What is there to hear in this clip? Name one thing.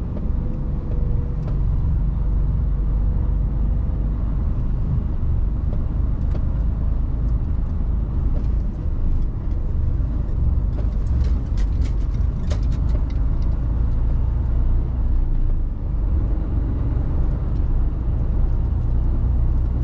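Tyres roll over a brick road.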